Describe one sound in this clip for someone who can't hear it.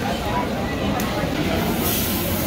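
Raw meat sizzles on a hot grill.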